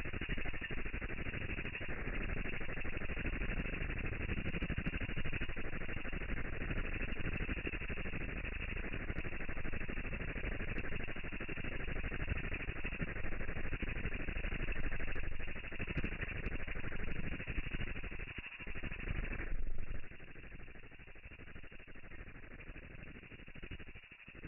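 Water bubbles and hisses steadily.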